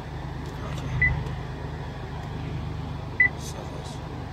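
A touchscreen beeps briefly when tapped.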